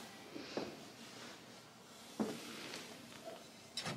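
A ceramic pot knocks lightly against a wooden shelf.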